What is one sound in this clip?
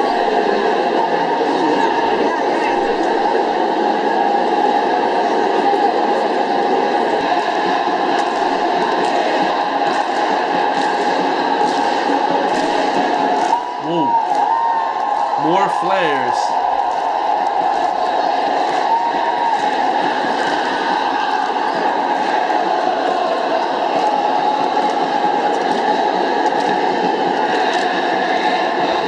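A large stadium crowd chants and roars loudly, heard through a speaker.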